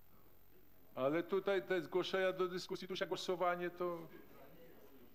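A man speaks briefly through a microphone in a large room.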